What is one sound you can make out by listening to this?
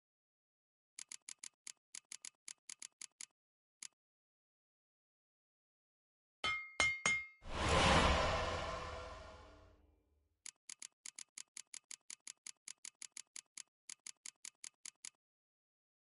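Quick menu clicks tick one after another.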